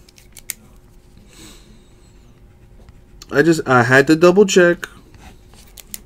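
A pen scratches on a card.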